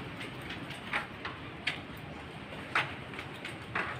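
A metal door rattles open.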